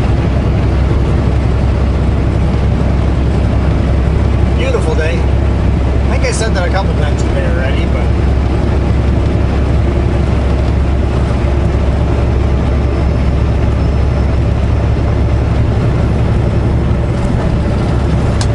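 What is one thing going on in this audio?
Tyres roar steadily on a highway.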